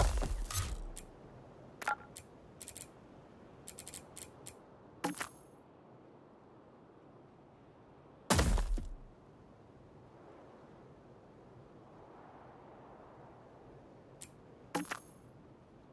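Short interface clicks and blips sound as menu items are chosen.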